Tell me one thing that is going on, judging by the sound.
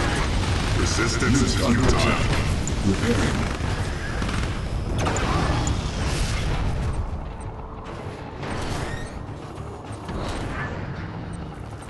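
Explosions boom and rumble in rapid bursts.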